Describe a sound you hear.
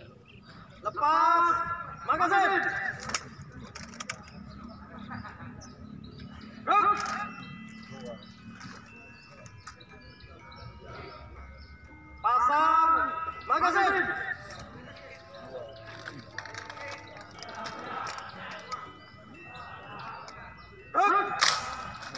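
A man shouts drill commands through a loudspeaker outdoors, in short loud bursts.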